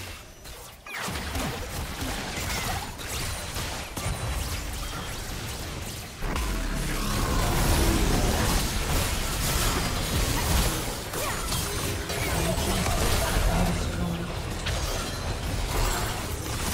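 Magic blasts and hits crackle and boom in a busy fight in a game.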